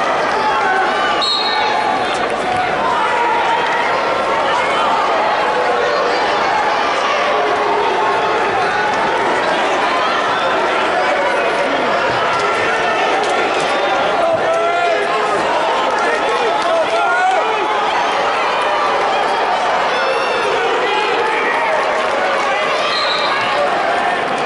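A crowd chatters and calls out throughout a large echoing hall.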